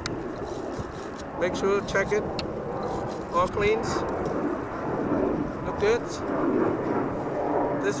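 A metal fitting clinks against a pipe.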